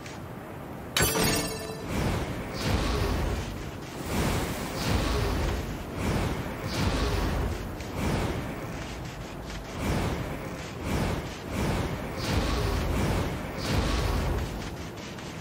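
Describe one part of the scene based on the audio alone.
A sharp whooshing dash sweeps past, again and again.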